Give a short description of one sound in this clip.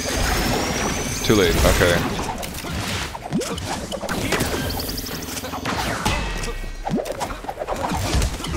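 Electronic blasts and zaps ring out in a fast-paced game fight.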